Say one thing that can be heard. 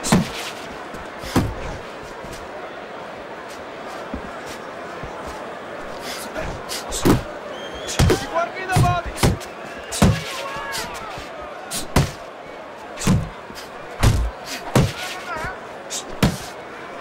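Boxing gloves thud heavily against a body in quick, sharp blows.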